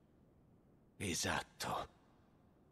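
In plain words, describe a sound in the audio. A young man speaks briefly in a low voice.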